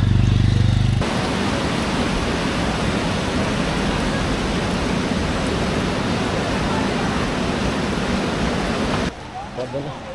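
A swollen river roars past in flood.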